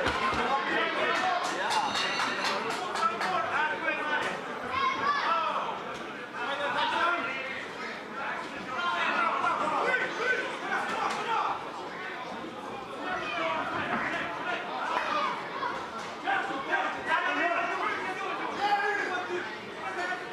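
A crowd of spectators talks and shouts throughout.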